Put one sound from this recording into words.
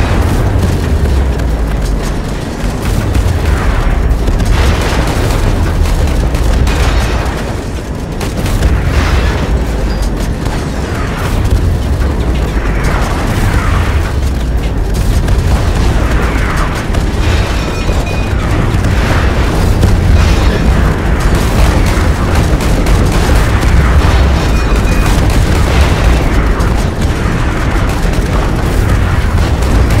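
Explosions boom and crackle.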